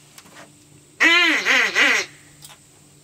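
A duck call quacks loudly in short bursts.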